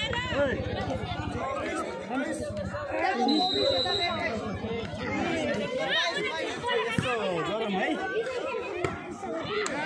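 A volleyball is struck hard.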